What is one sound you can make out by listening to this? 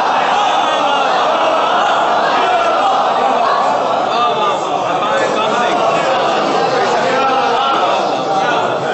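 A middle-aged man speaks passionately into a microphone, heard through loudspeakers in a reverberant space.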